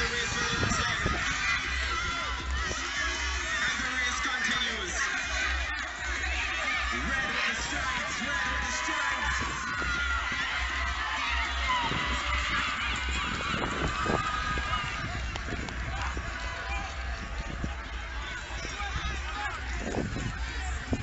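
A crowd of children shouts and cheers outdoors at a distance.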